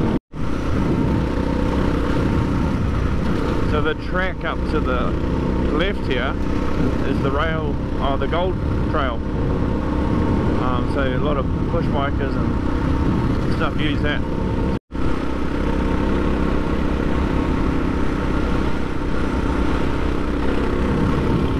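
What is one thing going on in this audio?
Tyres crunch and rumble over loose gravel.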